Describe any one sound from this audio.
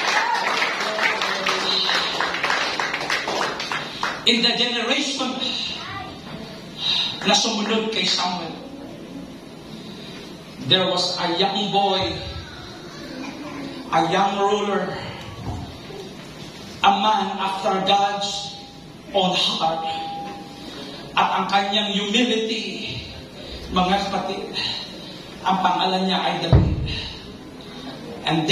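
A man speaks with feeling into a microphone in short phrases with pauses, heard through loudspeakers in a room.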